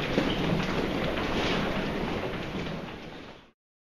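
Suitcase wheels roll along the floor with a steady rumble.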